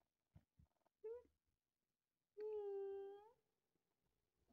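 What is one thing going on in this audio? A cat gives a short meow.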